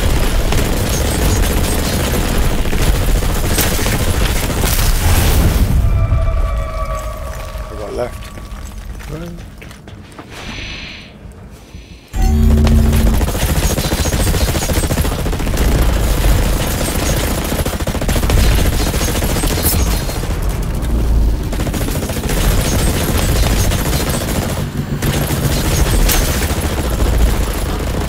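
Automatic rifles fire in rapid, loud bursts.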